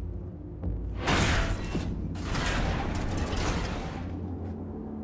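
A heavy metal door scrapes and creaks as it is pushed open.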